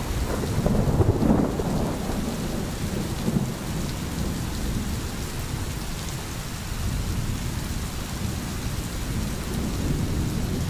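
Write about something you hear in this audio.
A stream babbles and gurgles over stones.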